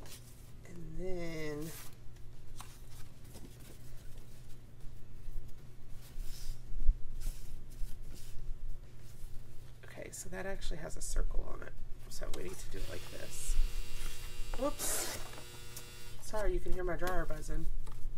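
Paper rustles and slides as sheets are handled.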